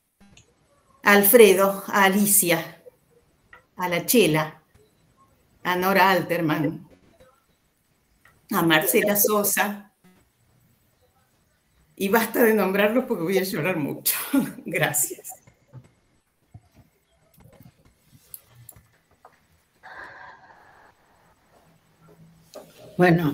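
An elderly woman speaks with animation over an online call, in short bursts.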